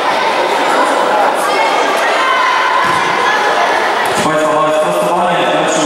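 Children shout and call out across a large echoing hall.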